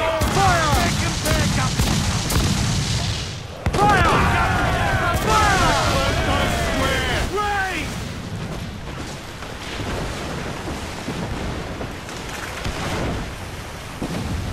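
Cannons boom in rapid volleys.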